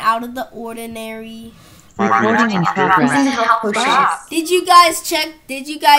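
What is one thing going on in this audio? A boy talks with animation through an online call.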